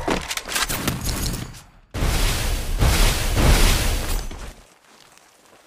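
A loud whooshing rush sounds in bursts, then fades away.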